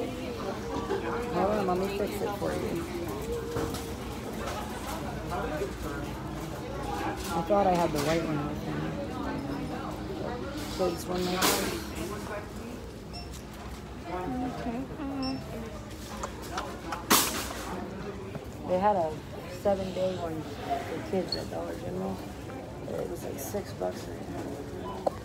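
A young woman talks close by through a mask, in a muffled voice.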